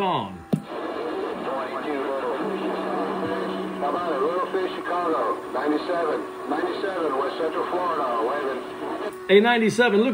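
A radio loudspeaker plays a crackly, muffled transmission.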